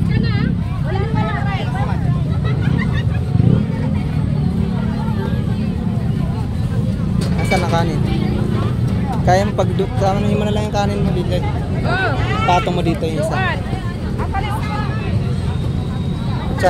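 A crowd chatters steadily all around.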